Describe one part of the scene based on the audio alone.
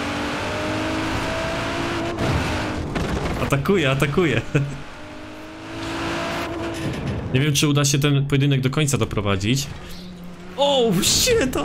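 A car engine roars and revs up and down as it speeds along.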